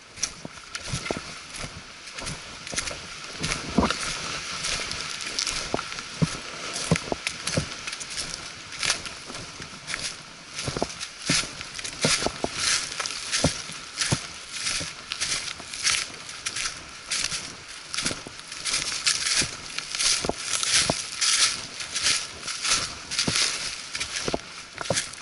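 Footsteps crunch steadily over dry leaves and twigs.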